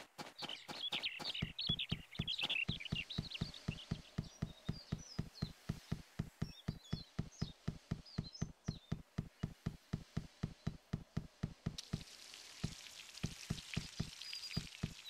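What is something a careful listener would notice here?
Quick footsteps run steadily over stone paving.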